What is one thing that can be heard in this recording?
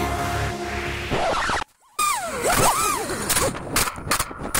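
Small drone motors whine loudly, rising and falling in pitch.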